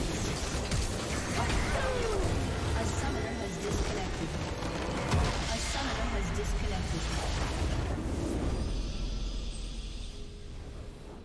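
Game spell effects whoosh and crackle in a loud battle.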